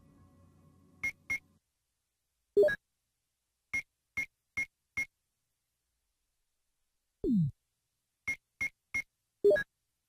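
Short electronic menu blips tick in quick succession.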